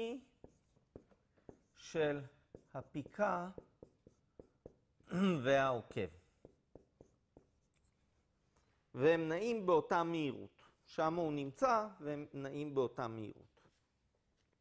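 A man lectures calmly through a microphone, pausing between phrases.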